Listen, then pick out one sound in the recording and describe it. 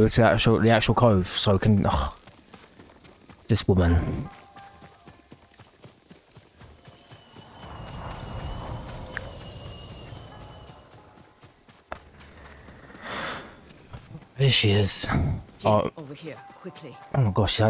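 Footsteps run quickly over a dirt path.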